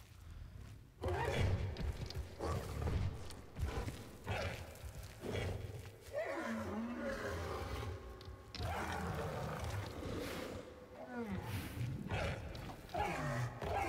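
A large creature thuds heavily on the ground as it moves about.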